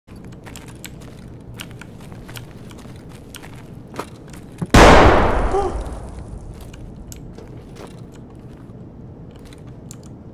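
Footsteps crunch slowly on a gritty floor.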